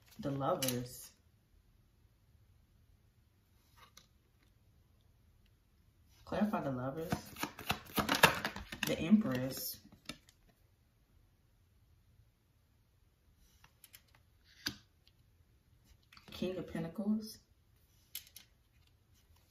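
Playing cards tap and slide onto a table.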